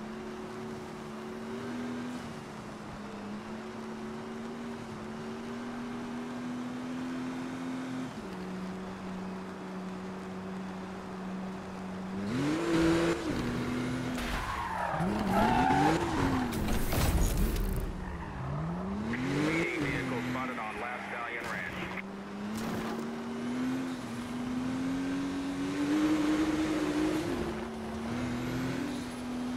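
A car engine roars steadily, rising and falling in pitch as the car speeds up and slows down.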